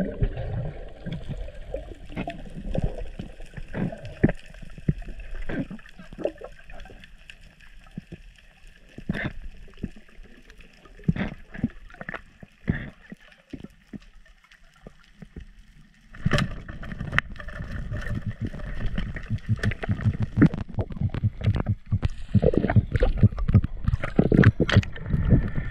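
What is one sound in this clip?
Underwater, clicks and crackles sound all around.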